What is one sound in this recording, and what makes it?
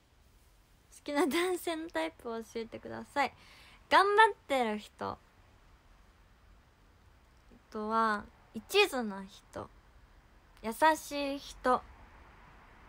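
A young woman talks casually and closely into a microphone, in short bursts.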